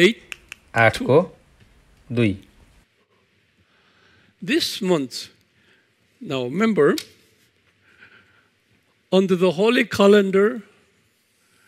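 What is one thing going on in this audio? A middle-aged man speaks calmly through a microphone in short phrases.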